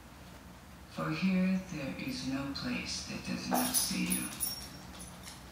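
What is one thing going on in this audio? A woman speaks softly through a television speaker.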